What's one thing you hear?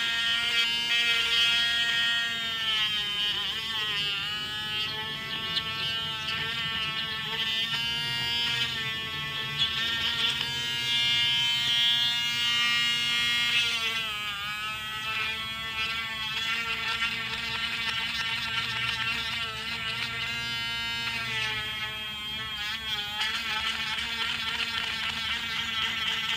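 A small rotary tool whines at high speed, its pitch dipping now and then as it grinds.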